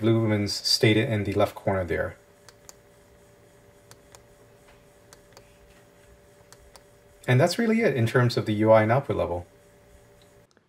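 A flashlight switch clicks several times.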